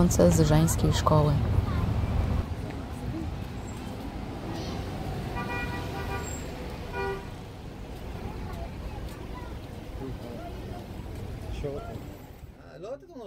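Traffic rumbles along a city street outdoors.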